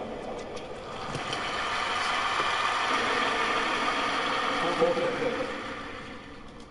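A crowd applauds and cheers loudly in a large arena.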